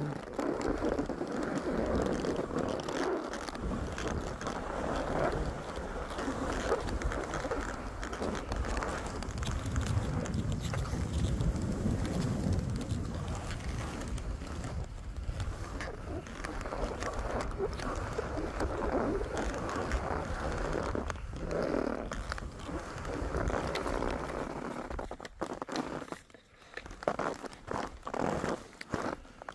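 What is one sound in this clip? Skis hiss and scrape over snow.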